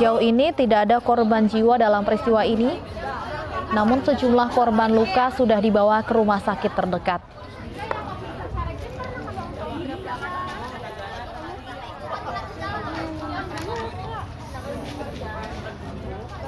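A crowd of people talks and murmurs outdoors.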